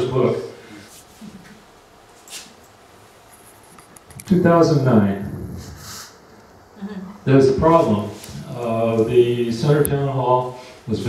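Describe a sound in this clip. An older man speaks calmly into a microphone, heard through a loudspeaker in a room with some echo.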